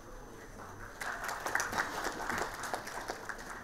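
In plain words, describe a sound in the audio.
A small audience claps.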